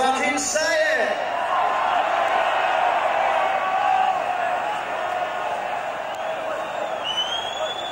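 A large crowd cheers and shouts loudly in a big open space.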